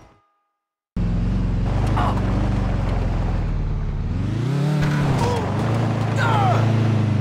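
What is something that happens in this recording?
A pickup truck's engine revs and roars.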